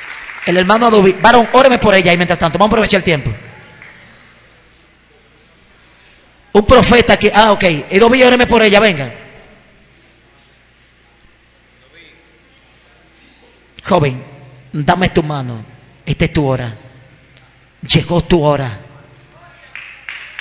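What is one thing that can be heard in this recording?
A man preaches passionately into a microphone through loudspeakers, in bursts with pauses, in an echoing hall.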